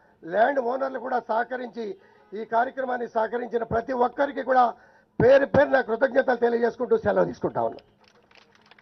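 A middle-aged man speaks forcefully into a microphone over loudspeakers outdoors.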